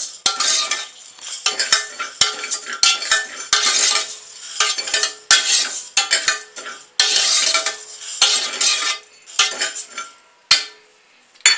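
Dry lentils rattle and scrape against a metal pot as a ladle stirs them.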